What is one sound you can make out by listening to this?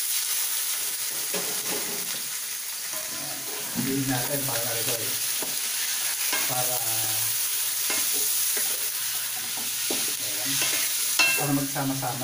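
Meat sizzles steadily in a hot pan.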